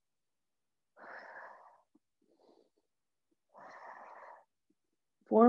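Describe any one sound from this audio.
A woman breathes out hard through her mouth.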